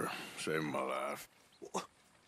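A woman speaks warmly close by.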